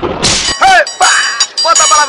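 A man shouts up close.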